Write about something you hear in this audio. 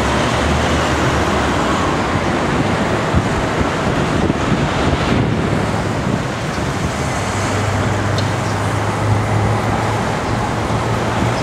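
Wind buffets loudly outdoors, rushing past.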